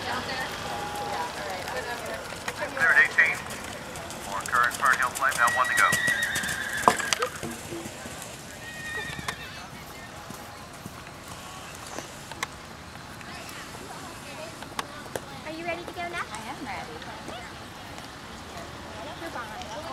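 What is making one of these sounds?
Horse hooves thud on soft sand at a canter.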